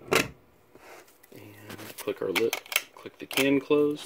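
A metal switch clicks as it is turned.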